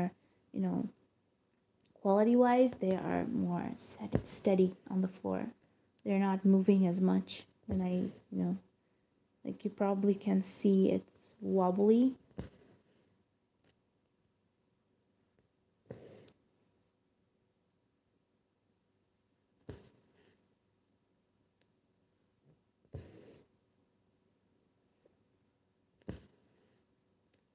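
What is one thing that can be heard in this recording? Thread rasps softly as it is pulled through stiff fabric.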